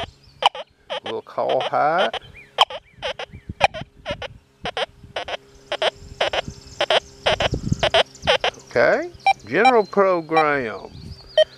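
A metal detector beeps and warbles in short, quick bursts.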